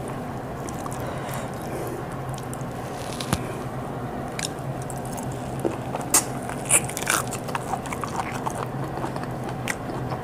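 A woman chews and smacks her lips loudly, close up.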